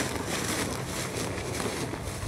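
Footsteps rustle through low crops.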